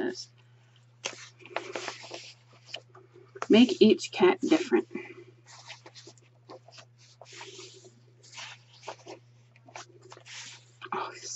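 Paper pages rustle and flip as a book's pages are turned by hand.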